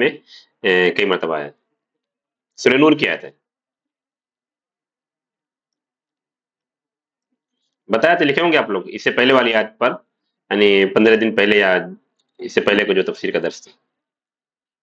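A man speaks calmly into a close microphone, with long pauses.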